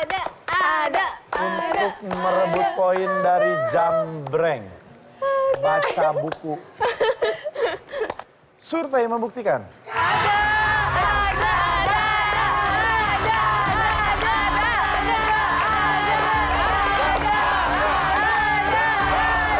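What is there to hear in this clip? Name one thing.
A small group claps their hands.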